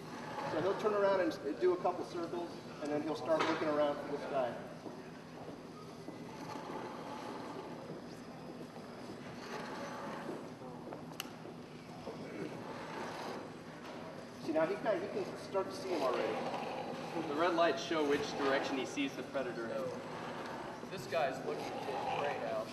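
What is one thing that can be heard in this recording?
Small toy robots whir faintly as they roll across a hard floor.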